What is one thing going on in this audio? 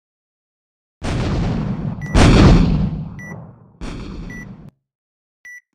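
A huge object crashes down with a loud, rumbling roar.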